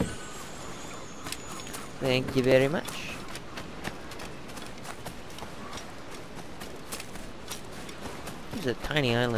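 Footsteps run quickly over sand and grass.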